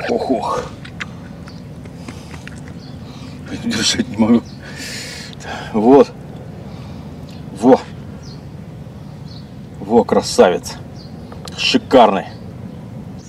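A middle-aged man talks calmly and close by, outdoors.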